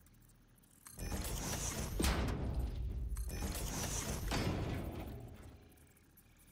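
Sparkling construction bursts crackle and whoosh.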